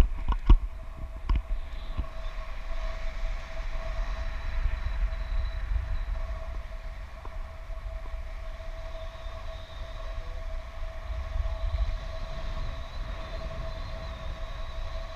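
Wind rushes and buffets steadily past a microphone outdoors.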